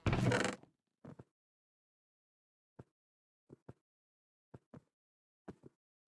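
Soft clicks sound as items are picked up and moved.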